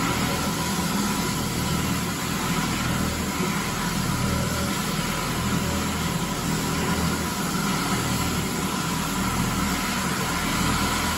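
A floor scrubber machine hums and whirs steadily as it drives along.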